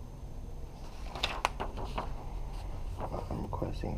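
Paper rustles in a hand.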